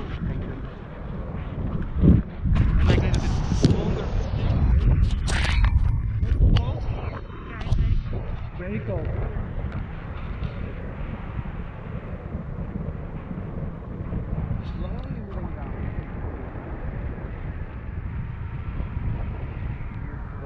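Strong wind rushes and buffets against a microphone outdoors.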